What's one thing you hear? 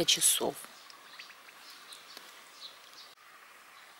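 Water sloshes gently as a hand presses paper down into a basin.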